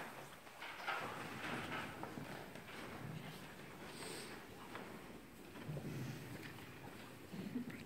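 A man speaks quietly to an audience.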